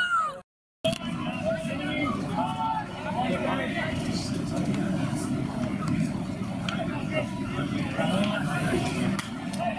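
Men shout and call out to each other outdoors.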